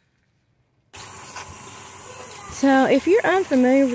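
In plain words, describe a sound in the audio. Water runs from a tap and splashes onto leaves.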